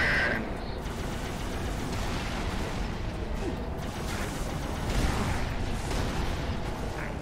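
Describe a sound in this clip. A game vehicle hums and roars steadily as it hovers over the ground.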